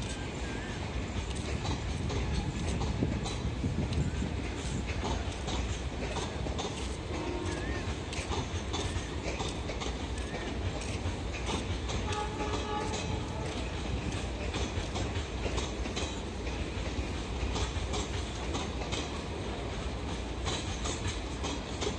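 A passenger train rumbles past steadily, its wheels clattering over rail joints.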